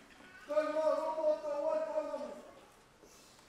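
A man chants loudly in a long, drawn-out call.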